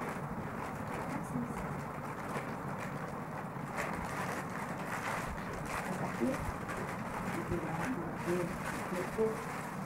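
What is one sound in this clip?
Foil wrappers crinkle and rustle close by.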